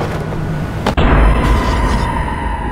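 A train strikes a body with a heavy thud.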